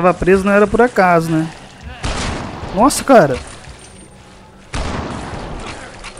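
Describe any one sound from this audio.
A rifle fires a shot.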